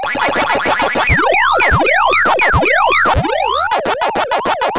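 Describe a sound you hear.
Rapid rising and falling electronic zaps sound as ghosts are eaten.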